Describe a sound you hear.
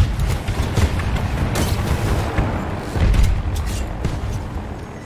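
A helicopter's rotor thumps nearby.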